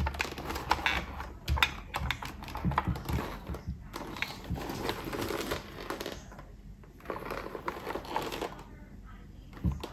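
A helmet visor clicks as it is moved.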